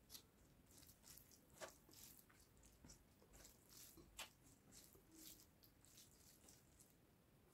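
Fingers squish and mix soft rice and curry up close.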